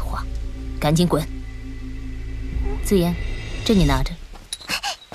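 A young woman speaks sharply and coldly.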